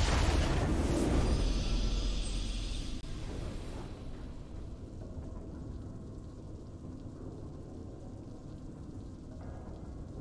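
A triumphant fanfare from a video game plays and fades.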